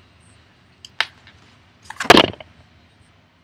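Playing cards slide and tap on a tabletop.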